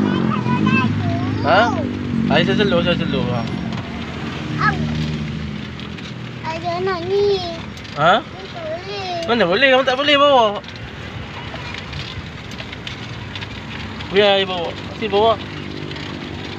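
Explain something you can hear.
A young girl chatters in a high voice.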